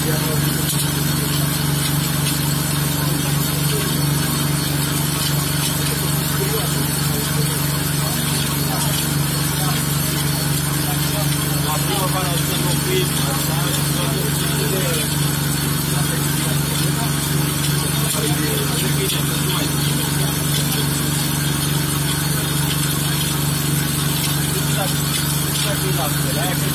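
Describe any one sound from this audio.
A hand pump creaks as a man works its lever.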